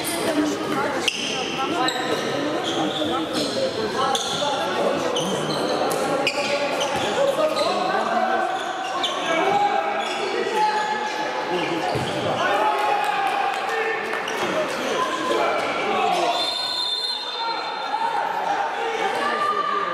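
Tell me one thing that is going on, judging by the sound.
A handball bounces on a wooden court in an echoing hall.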